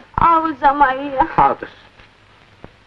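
A woman cries out in a high, wavering voice close by.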